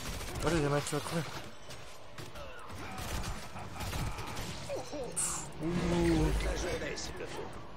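Game spells and weapon hits crackle and thud in a busy battle.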